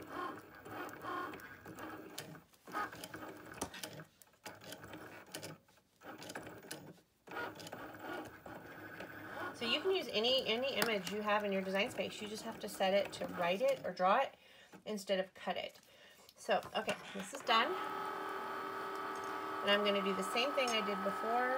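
A craft cutting machine's carriage motor whirs back and forth.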